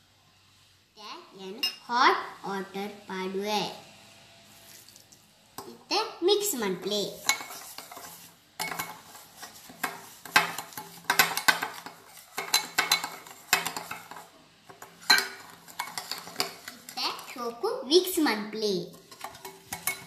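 A young boy speaks with animation close by.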